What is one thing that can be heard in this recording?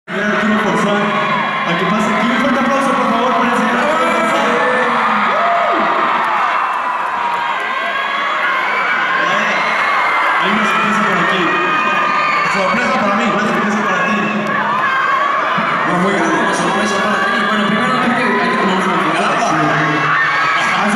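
A crowd screams and cheers loudly.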